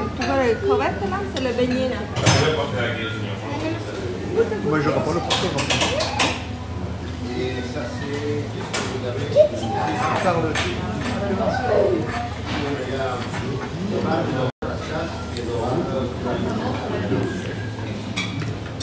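Several people chat nearby.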